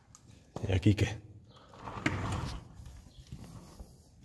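A wooden door creaks as it is pushed open.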